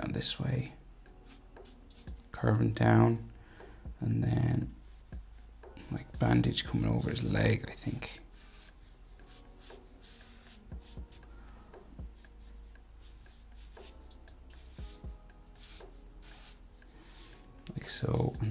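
A felt marker squeaks and scratches across paper.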